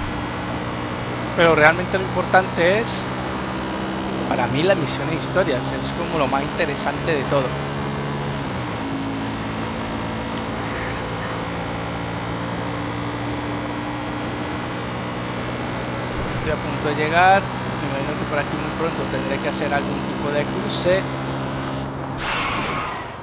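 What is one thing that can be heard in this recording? A quad bike engine hums steadily as it drives along.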